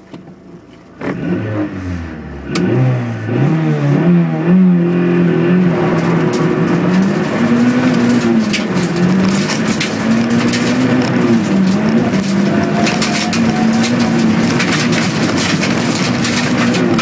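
A car engine starts up and revs, rising and falling in pitch as the car speeds up.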